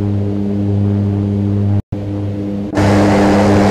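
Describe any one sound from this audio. A propeller engine drones steadily, heard from inside a small cockpit.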